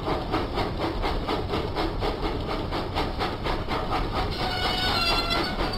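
A steam engine chugs steadily with rhythmic puffs as it approaches.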